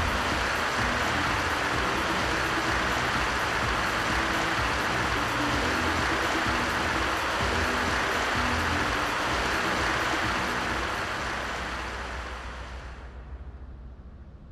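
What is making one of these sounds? A large crowd applauds loudly, then the applause fades away.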